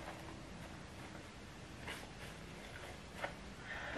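A tissue rustles against a woman's face.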